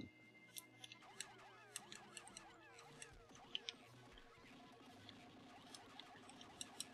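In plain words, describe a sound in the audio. Many small creatures chirp and squeak in quick, high bursts.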